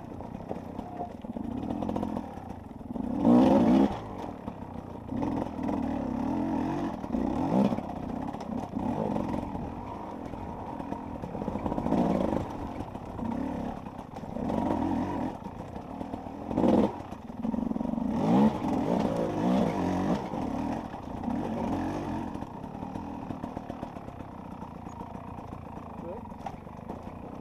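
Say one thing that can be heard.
A dirt bike engine revs up and down in bursts as it climbs rocky ground.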